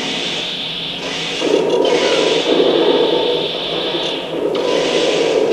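A video game robot's engine hums and whirs steadily.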